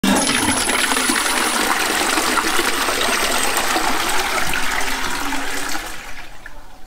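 A toilet flushes with loud rushing water.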